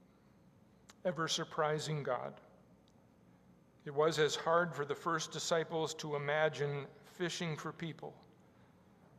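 An elderly man speaks slowly and solemnly through a microphone.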